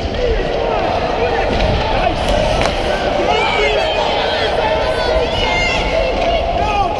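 Young players shout and call out across a large echoing rink.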